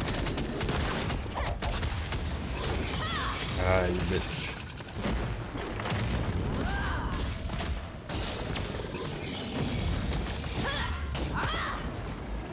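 Magic blasts and impacts boom in quick succession.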